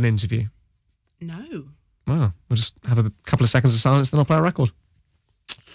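A young man talks casually into a microphone close by.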